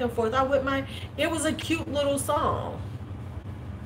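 A middle-aged woman speaks calmly and close to the microphone.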